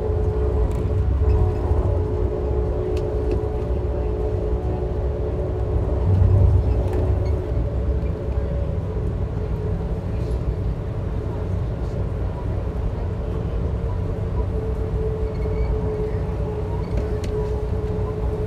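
A train rumbles steadily along the rails, heard from inside a carriage.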